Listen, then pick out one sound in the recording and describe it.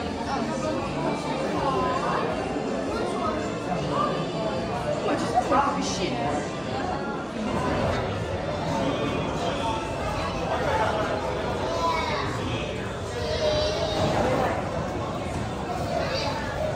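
Many people chatter and murmur around in a large, echoing indoor space.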